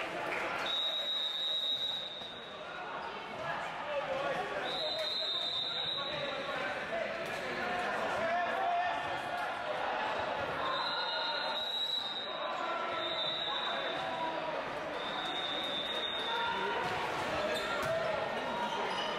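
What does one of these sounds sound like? Young men call out and shout to each other during play.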